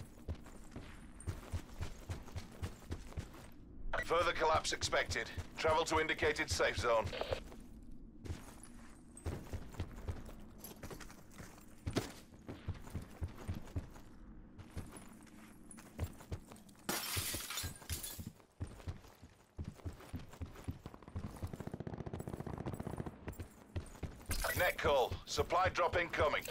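Footsteps thud quickly on grass and hard ground.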